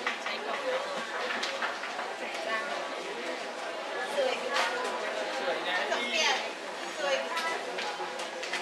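A crowd of women chatter nearby indoors.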